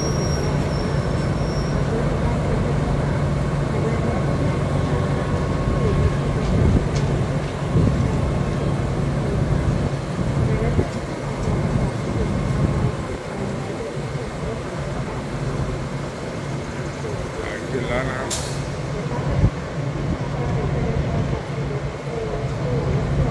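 A diesel locomotive engine idles with a steady low rumble.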